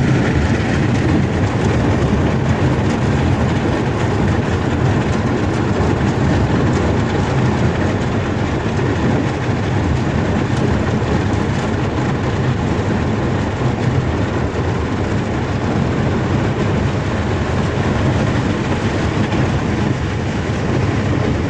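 A boat's motor drones steadily.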